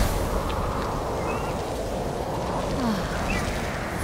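Large wings beat in the air.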